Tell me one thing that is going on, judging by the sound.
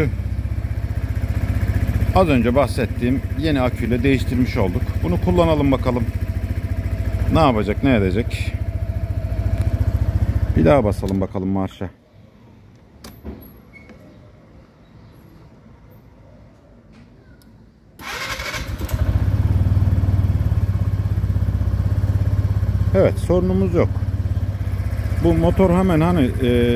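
A scooter engine idles with a low steady rumble.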